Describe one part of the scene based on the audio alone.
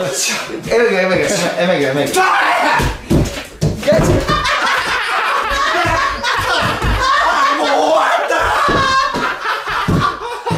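A young man shouts and yells with excitement nearby.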